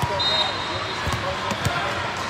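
A volleyball player strikes the ball with a hand to serve.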